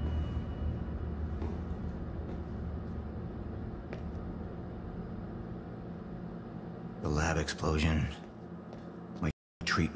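Footsteps tap softly on a hard floor.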